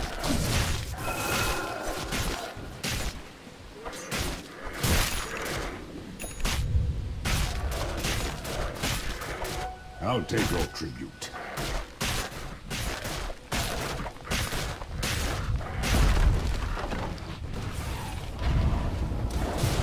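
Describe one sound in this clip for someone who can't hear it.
Weapons clash in quick, sharp hits.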